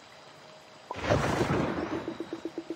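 A game plays a loud whoosh.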